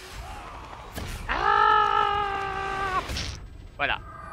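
A young man laughs loudly into a headset microphone.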